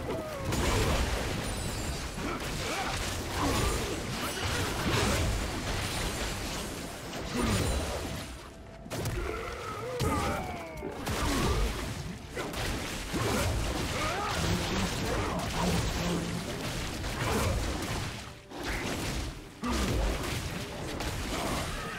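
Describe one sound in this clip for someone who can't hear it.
Magic blasts and clashing blows ring out in a fast-paced fight.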